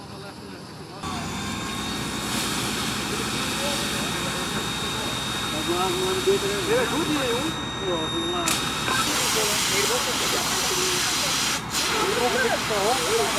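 Water sprays from a hose onto the ground.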